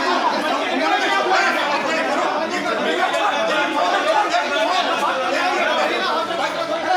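A man shouts angrily close by.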